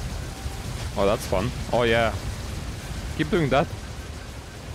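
A man exclaims loudly into a microphone, close by.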